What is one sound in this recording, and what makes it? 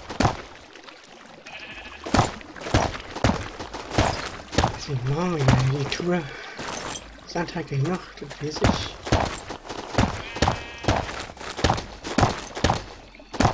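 Stone blocks break with quick, crunching thuds, again and again.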